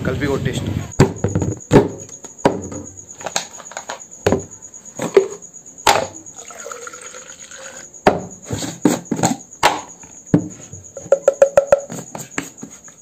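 A plastic shaker lid clicks and knocks as it is handled.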